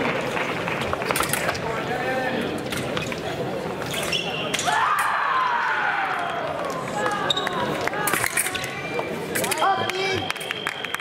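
Fencing blades clash and click together.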